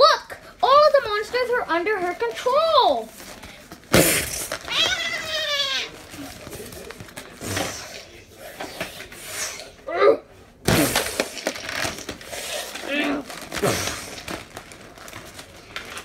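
Plastic toys knock and rustle together close by.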